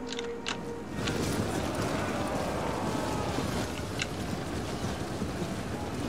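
A crowd of soldiers clashes and shouts in a battle.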